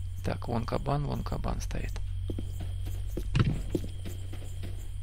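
Footsteps tread slowly over soft ground.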